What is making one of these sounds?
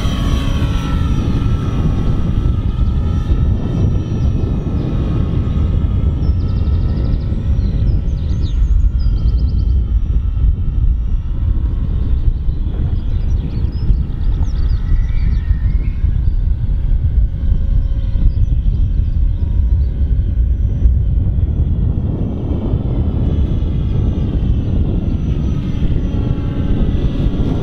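An electric model airplane whines as it passes overhead, rising and falling in pitch.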